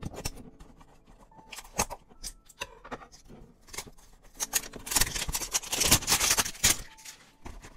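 A blade slices through a box's plastic wrapper with a crinkling rasp.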